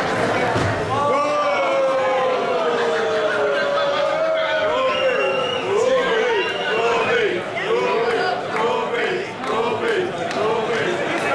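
A crowd chants loudly in rhythm.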